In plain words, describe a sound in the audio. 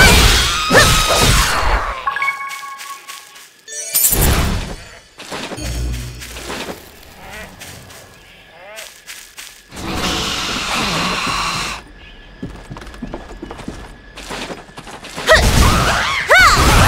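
Blades whoosh and clash in a fight.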